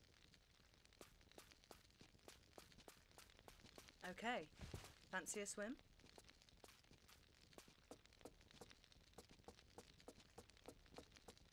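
Footsteps tap quickly and evenly on a hard floor.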